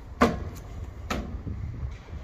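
Shoes land with sharp thuds on a stone surface.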